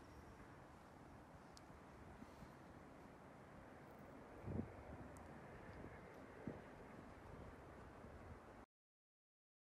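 Wind blows steadily outdoors, buffeting the microphone.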